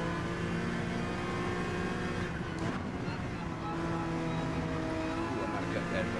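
A racing car engine drones steadily, its pitch dipping and rising as it shifts gears.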